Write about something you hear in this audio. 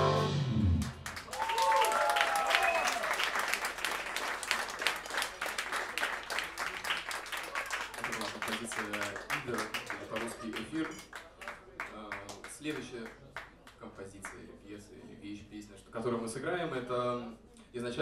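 Drums tap with quick cymbal strokes.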